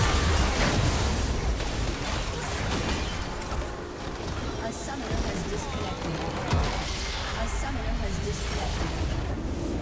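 Spell blasts, explosions and clashing combat effects crash loudly and densely.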